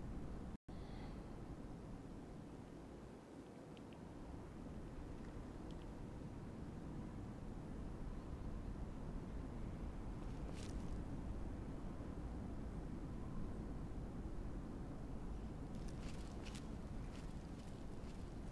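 Wind blows steadily outdoors with a low rumble.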